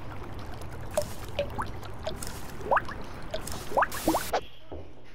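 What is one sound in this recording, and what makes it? Water drips and plops in a small pond.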